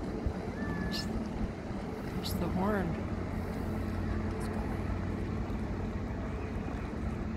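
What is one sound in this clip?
Water splashes against a ship's hull.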